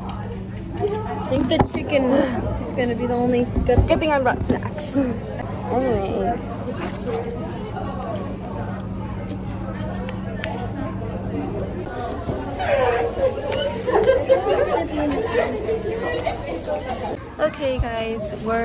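A girl talks close by.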